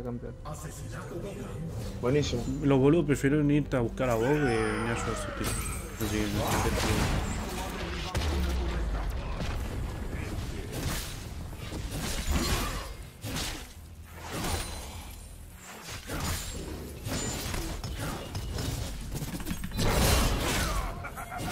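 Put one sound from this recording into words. Spells and weapons crackle and clash in a fast video game battle.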